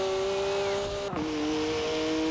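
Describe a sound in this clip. A car engine drops in pitch as it shifts up a gear.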